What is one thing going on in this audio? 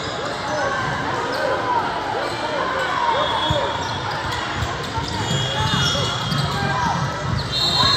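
Sneakers squeak sharply on a hard court again and again.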